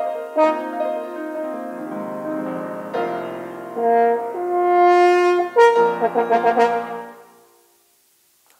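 A French horn plays a melody in a large echoing hall.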